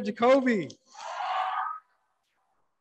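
A young woman cheers.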